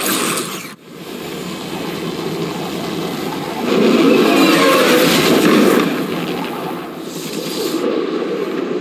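A jet engine roars loudly and passes by.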